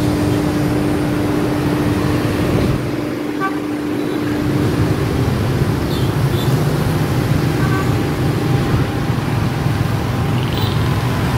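Traffic rumbles steadily along a nearby street.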